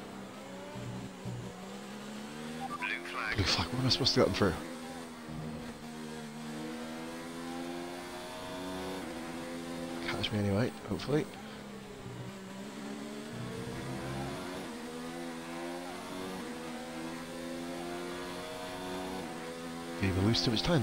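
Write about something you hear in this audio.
A racing car engine whines loudly, rising and falling in pitch as it shifts gears.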